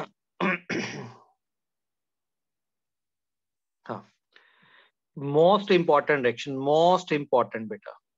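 A man speaks calmly, heard through an online call.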